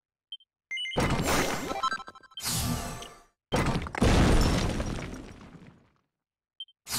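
Game sound effects chime and whoosh as a hidden panel shatters.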